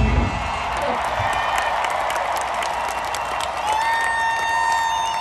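A rock band plays loudly through large outdoor speakers.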